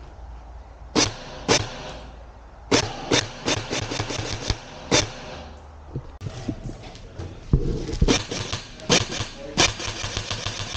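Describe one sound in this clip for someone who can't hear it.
An airsoft rifle fires sharp snapping shots nearby.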